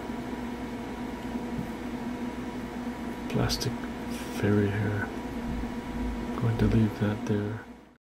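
Hard plastic parts click softly as a hand handles a toy figure.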